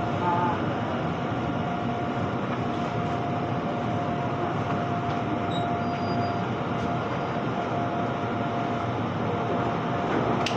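Train brakes squeal with a thin steady whine.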